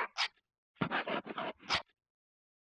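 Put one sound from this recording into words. A pen scratches across paper.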